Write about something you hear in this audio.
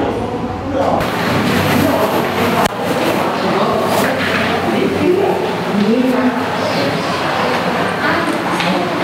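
Voices of several people talk outdoors.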